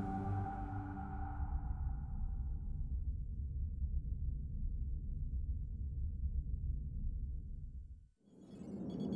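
A deep engine hum rumbles steadily.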